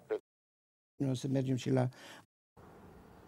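An elderly man speaks with feeling.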